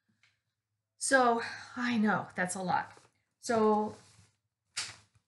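An older woman speaks calmly and close to a microphone.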